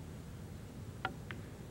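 Billiard balls knock together with a sharp click.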